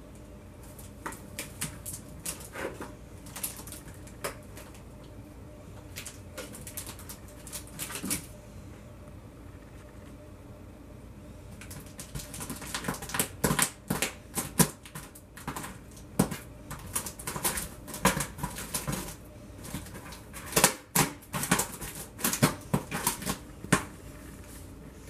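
A cat's paws tap and scratch on cardboard boxes.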